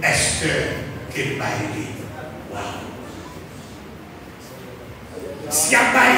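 A man preaches loudly into a microphone through loudspeakers in an echoing hall.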